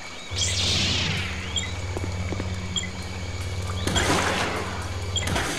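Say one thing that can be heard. A lightsaber whooshes as it swings.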